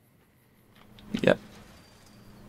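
A metal gate creaks and clanks open.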